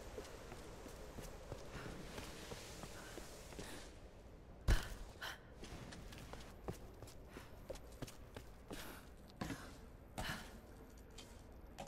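A young man talks through a close microphone.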